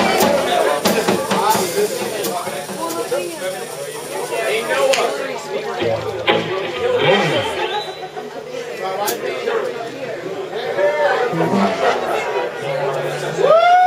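A live band plays rock music loudly.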